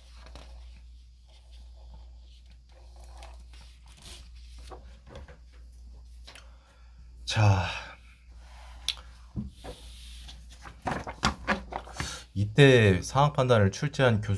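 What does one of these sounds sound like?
Sheets of paper rustle as pages are turned.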